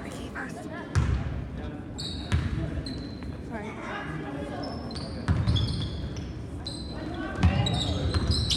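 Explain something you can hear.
A basketball bounces with dull thuds on a wooden floor in an echoing gym.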